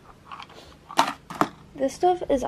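A hard plastic object knocks against a shelf.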